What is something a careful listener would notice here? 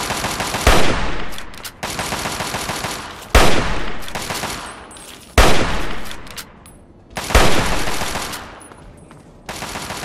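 A rifle fires loud single shots that echo away outdoors.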